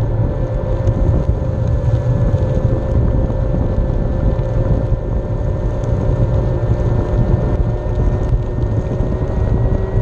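Skateboard wheels roll steadily over rough pavement.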